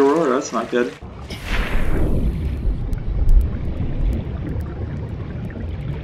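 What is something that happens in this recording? Water rumbles low and muffled underwater.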